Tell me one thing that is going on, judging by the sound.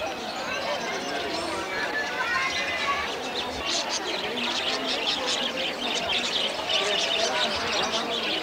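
Many caged birds chirp and twitter busily.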